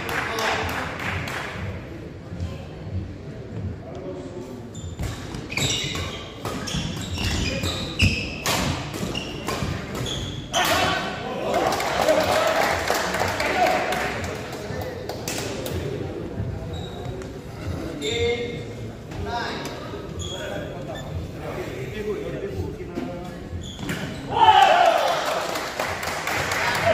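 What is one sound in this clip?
Shuttlecocks are struck sharply by rackets in a large echoing hall.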